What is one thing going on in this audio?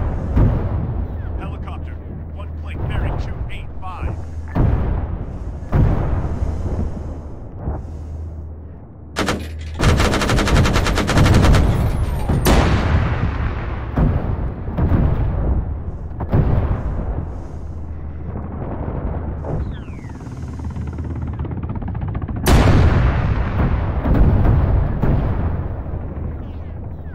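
Heavy explosions boom and rumble again and again.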